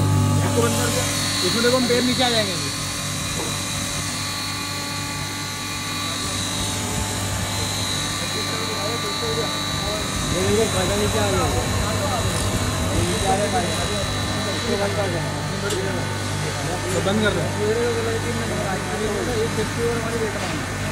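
A man talks nearby over the machine noise.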